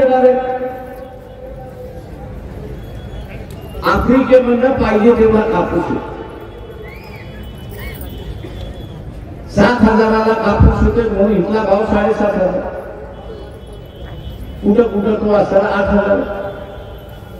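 An elderly man speaks forcefully into a microphone over loudspeakers, with pauses between phrases.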